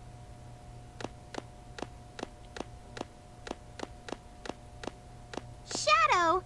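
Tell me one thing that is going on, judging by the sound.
Footsteps tap steadily on a metal floor.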